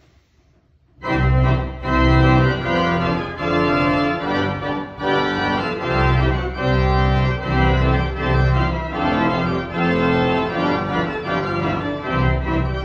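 A pipe organ plays loud, full chords that ring through the hall.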